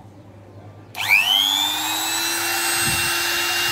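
A small electric motor spins up quickly and runs with a high, steady whine.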